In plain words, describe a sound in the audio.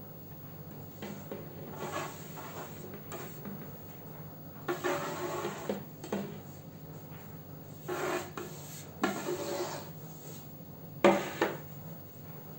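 Hands sweep small pieces of dough across a wooden board into a plate, with soft scraping and clattering.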